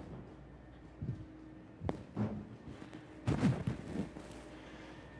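Footsteps thud on a metal walkway.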